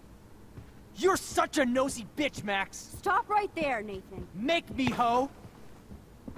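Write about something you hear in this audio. A young man speaks close into a microphone.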